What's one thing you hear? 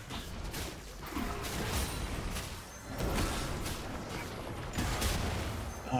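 Fantasy spell effects whoosh and burst in quick succession.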